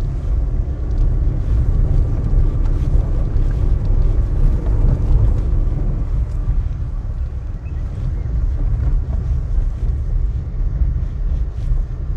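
A vehicle engine rumbles low and steady as it drives slowly.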